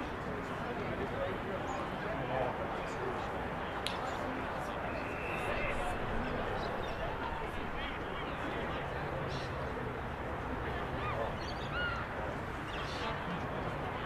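Young men shout to each other across an open field in the distance.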